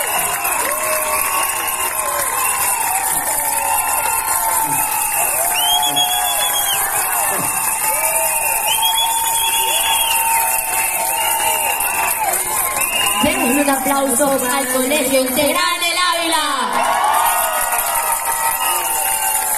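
Young people on a stage sing and chant.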